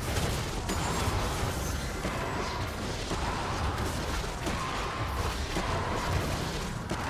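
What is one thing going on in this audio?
Video game combat effects crash and whoosh steadily.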